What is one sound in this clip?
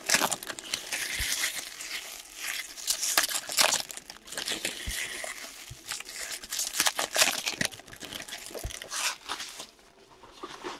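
Foil card wrappers crinkle and tear as hands open them.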